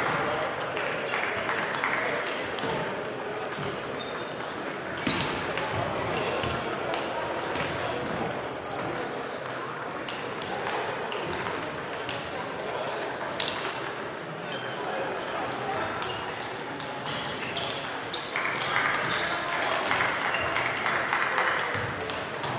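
Shoes squeak on the wooden floor.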